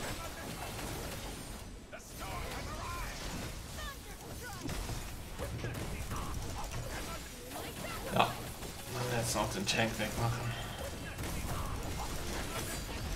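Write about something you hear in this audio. Fantasy battle sound effects clash and zap.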